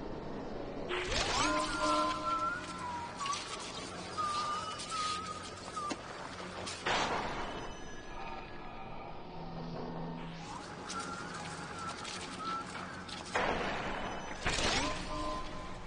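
A sharp magical whoosh sweeps past several times.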